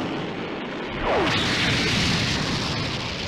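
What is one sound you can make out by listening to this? A heavy crash explodes into a loud, rumbling blast.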